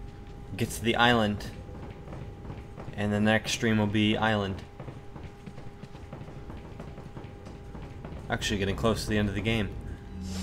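Footsteps tread on a hard floor in an echoing hall.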